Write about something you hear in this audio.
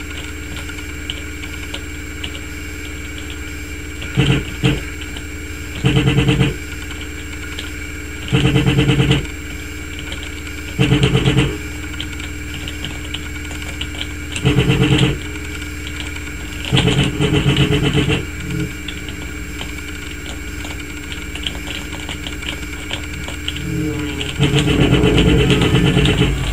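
A plane engine drones steadily through a loudspeaker.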